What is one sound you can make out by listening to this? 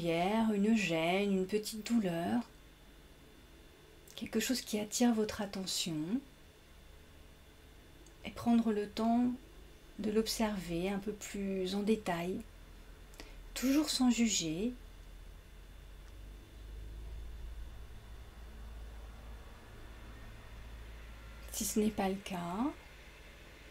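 A young woman speaks calmly and softly into a nearby microphone, with pauses.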